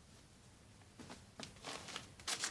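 Fabric rustles as clothes are shuffled by hand.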